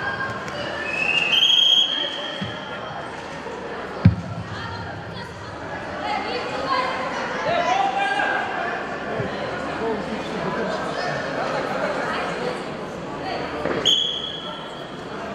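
A referee blows a sharp whistle.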